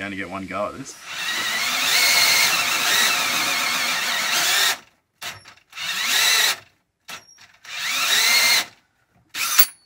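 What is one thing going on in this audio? A cordless drill whirs in short bursts.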